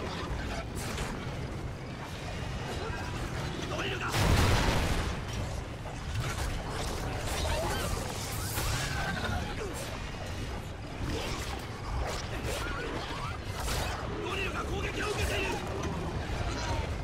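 Monsters screech and snarl.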